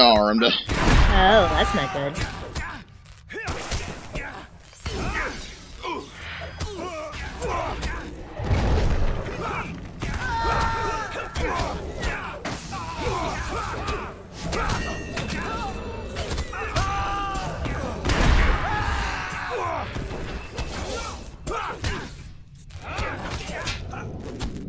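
Weapons clash and strike in a close fight.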